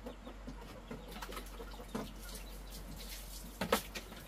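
Water splashes in a basin.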